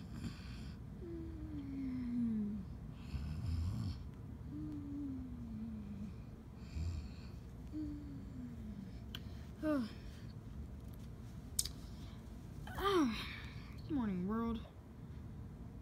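A small puppy whimpers and squeals in high, falling cries.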